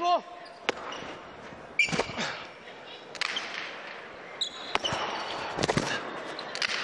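A hard ball smacks sharply against a wall and floor, echoing in a large hall.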